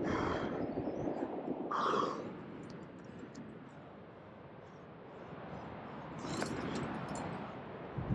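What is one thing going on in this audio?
Hands scrape and brush against rough rock up close.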